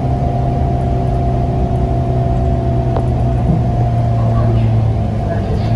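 The bus body rattles faintly as it drives.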